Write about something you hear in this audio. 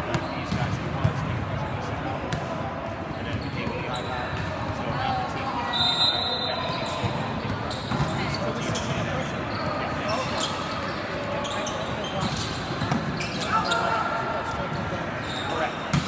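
A volleyball is hit with sharp smacks in a large echoing hall.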